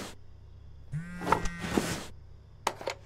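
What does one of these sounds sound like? A mobile phone rings with an incoming call.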